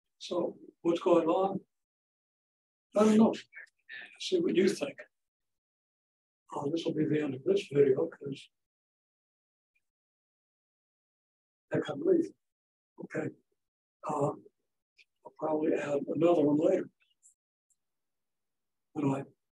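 An elderly man speaks calmly in short bursts with pauses, close by.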